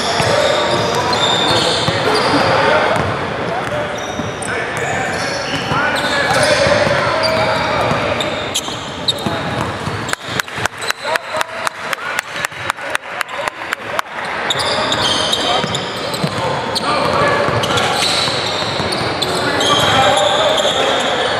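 People chatter and call out around the court.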